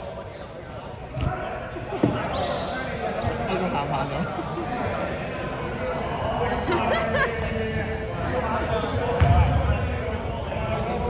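Several boys talk and call out in a large echoing hall.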